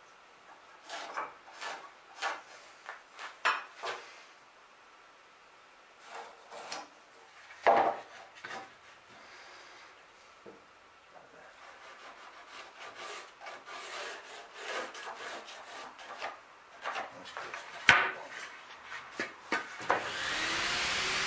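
Wooden boards knock against each other.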